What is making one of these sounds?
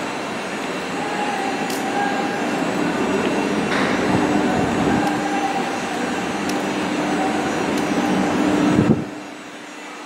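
Train wheels squeal with a steady high whine.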